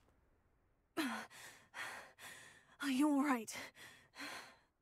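A young woman asks a question calmly.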